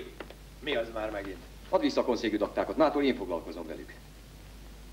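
A middle-aged man speaks sternly and forcefully up close.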